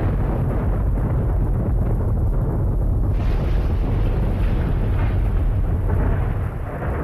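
Wind rumbles steadily outdoors through trees.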